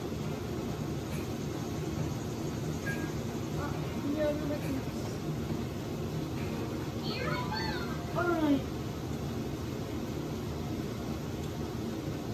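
Cheerful video game music and chirpy sound effects play from a television speaker.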